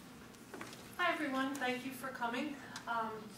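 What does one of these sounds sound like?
A woman speaks to an audience through a microphone.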